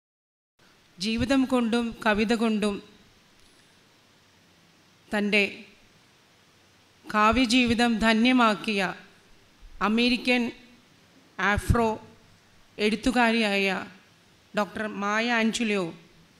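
A woman speaks into a microphone in measured phrases, heard through a loudspeaker.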